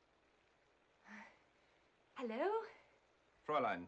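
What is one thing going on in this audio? A woman laughs brightly.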